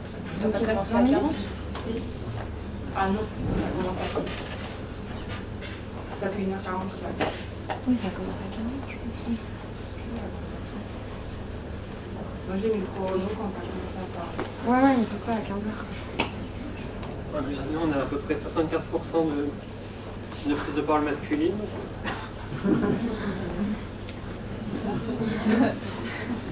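A young person speaks calmly into a microphone, heard through a loudspeaker.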